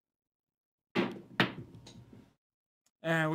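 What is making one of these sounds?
Dice clatter and tumble across a table.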